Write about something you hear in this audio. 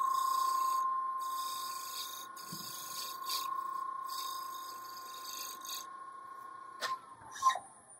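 A lathe motor hums steadily, then stops.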